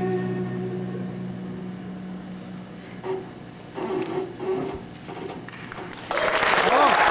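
A violin plays a slow, sustained melody.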